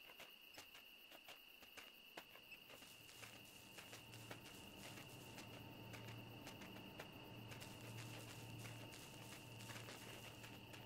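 A fox's paws crunch through snow in quick steps.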